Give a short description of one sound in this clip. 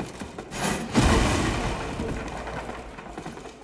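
Heavy footsteps crunch on a wooden floor.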